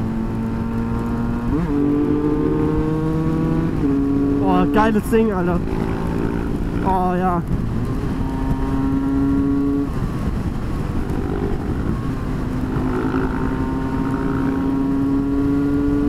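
A motorcycle engine hums steadily close by, changing pitch as the rider shifts gears.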